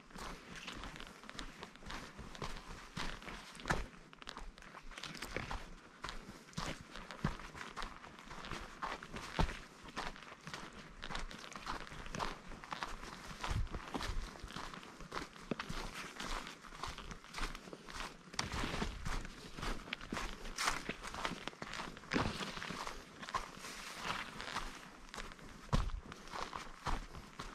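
Footsteps crunch on a dirt trail with dry leaves.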